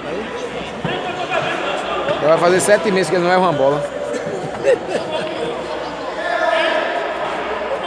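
A crowd of men talk and call out loudly in an echoing hall.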